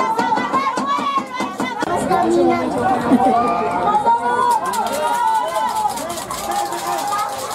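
A crowd of men and women cheer and shout excitedly nearby, outdoors.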